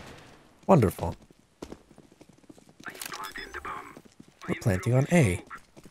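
Keypad buttons beep as a code is punched in.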